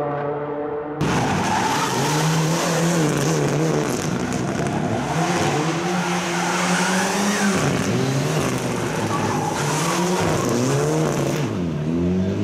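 Tyres squeal on asphalt as a rally car slides.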